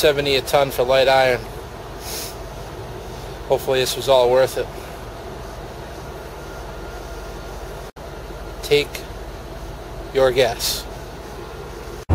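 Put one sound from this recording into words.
An adult man talks close up.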